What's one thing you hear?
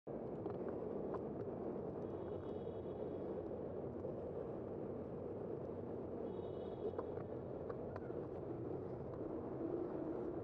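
A vehicle's engine hums steadily as it drives along a street.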